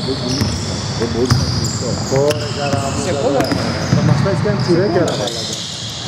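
A basketball bounces on a hard court in an echoing hall.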